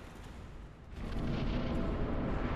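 A fiery blast roars and crackles.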